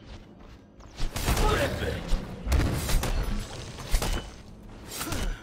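A loud magical blast bursts and crackles.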